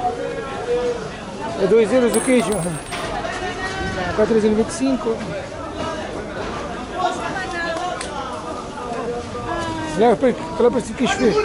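Many men and women chatter and call out nearby in a lively crowd.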